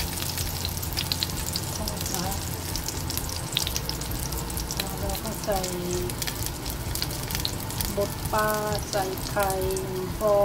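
Oil sizzles and crackles steadily in a hot pan.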